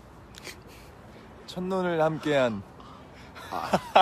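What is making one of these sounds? A young man laughs softly close by.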